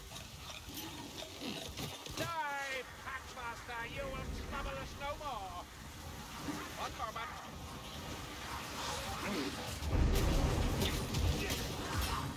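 A horde of creatures snarls and growls.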